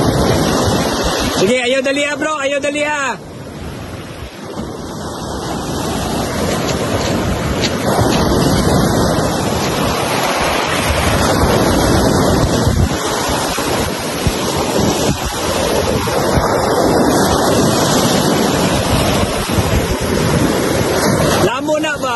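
Waves wash and break over a pebble beach.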